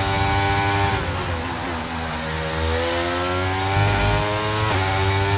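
A racing car engine drops in pitch as the car brakes and downshifts, then climbs again.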